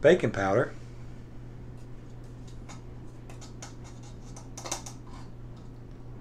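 A metal can is tapped, shaking powder into a bowl.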